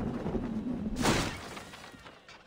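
A body lands with a soft thump in a pile of hay.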